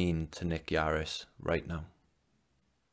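A young man speaks calmly into a microphone over an online call.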